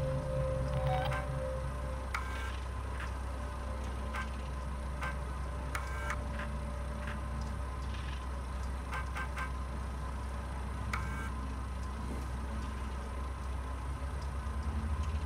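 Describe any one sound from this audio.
A computer terminal beeps and clicks as keys are pressed.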